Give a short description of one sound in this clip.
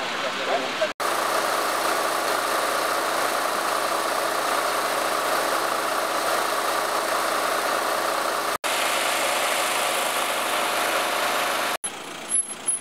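A vehicle engine idles steadily nearby.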